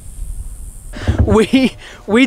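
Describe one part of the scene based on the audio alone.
A young man talks animatedly, close up.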